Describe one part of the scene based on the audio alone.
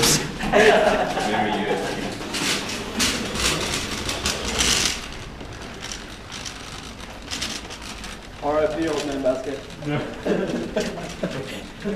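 A trolley's wheels rattle and roll across the floor.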